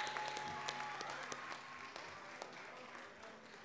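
A group of people applaud in a large echoing hall, the clapping thinning out.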